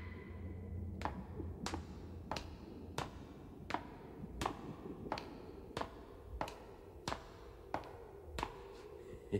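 Boots step steadily on hard ground with a crisp, regular tread.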